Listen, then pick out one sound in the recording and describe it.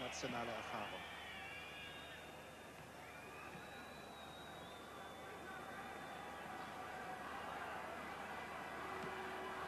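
A large crowd roars and murmurs throughout an open stadium.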